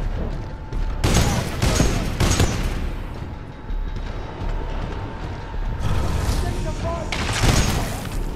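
Heavy guns fire in loud, sharp bursts.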